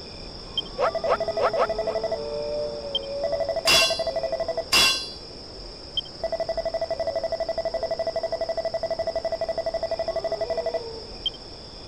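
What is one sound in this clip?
Rapid electronic blips tick along quickly.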